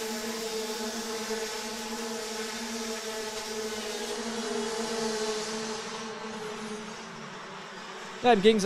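Kart engines buzz and whine steadily as the karts race past.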